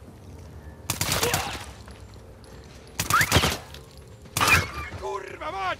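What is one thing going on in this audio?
Gunshots ring out sharply a few times.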